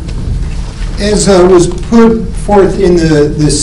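A middle-aged man speaks calmly through a microphone.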